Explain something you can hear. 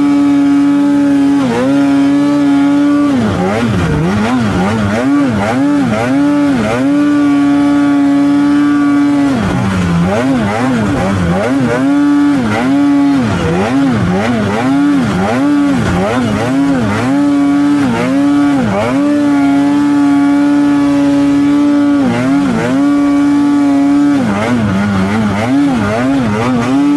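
A snowmobile engine roars close by, its pitch rising and falling again and again as the throttle is worked.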